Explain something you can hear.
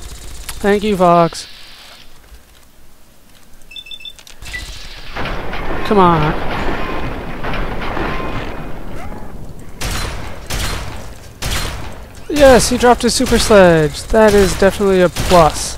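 A laser rifle fires sharp zapping shots.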